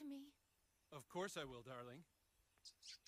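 A man answers warmly.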